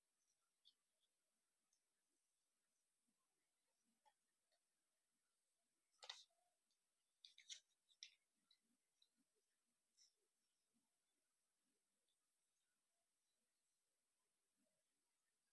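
Thin foil paper crinkles and rustles as it is folded by hand.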